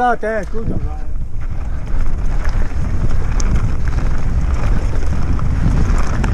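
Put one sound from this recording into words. Wind rumbles against the microphone as the bike speeds downhill.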